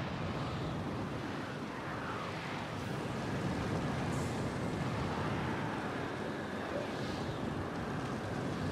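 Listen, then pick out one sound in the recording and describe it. Spacecraft engines roar steadily as the craft fly.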